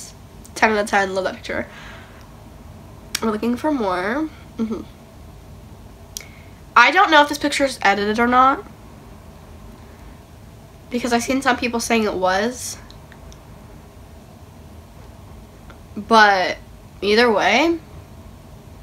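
A young woman speaks expressively and close to a microphone, in short bursts with pauses.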